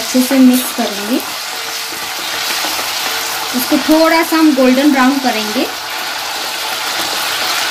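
A wooden spatula scrapes and stirs potatoes in a pot.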